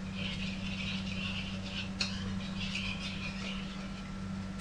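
A spoon scrapes against a bowl.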